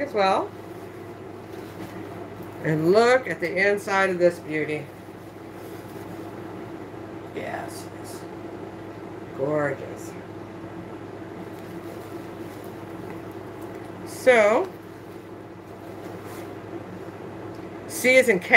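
Leather and fabric rustle as a handbag is handled.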